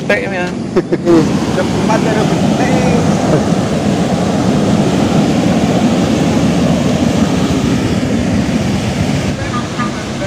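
Water rushes loudly nearby.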